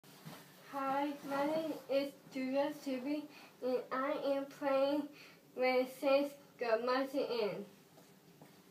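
A young woman sings nearby, clear and melodic.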